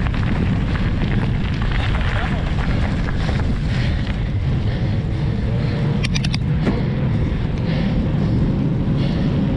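Bicycle tyres roll over a paved path.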